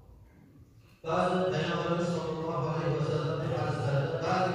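A man chants loudly through a loudspeaker in a large echoing hall.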